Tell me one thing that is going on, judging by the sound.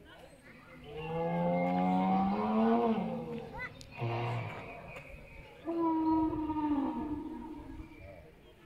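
A dinosaur figure roars loudly through a loudspeaker.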